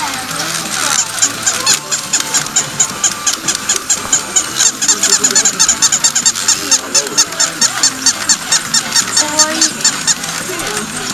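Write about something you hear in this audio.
A battery toy dog clicks rapidly and steadily as it moves.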